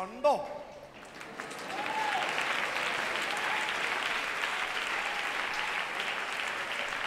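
A man speaks cheerfully through a microphone and loudspeakers.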